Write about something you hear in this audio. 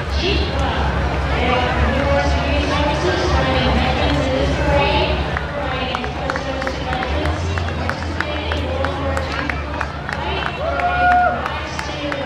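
A crowd of people chatters and calls out along a street outdoors.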